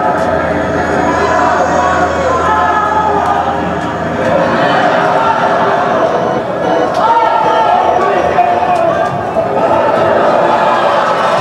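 A crowd of people chatter loudly in a noisy, echoing room.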